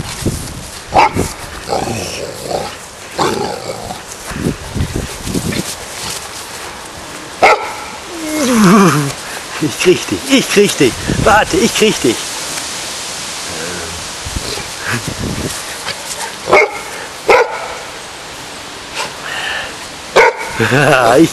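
A dog barks nearby.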